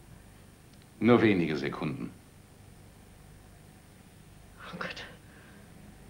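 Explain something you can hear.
An elderly woman speaks slowly in a low voice.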